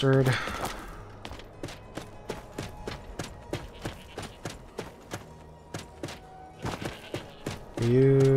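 Footsteps walk at a steady pace on stone.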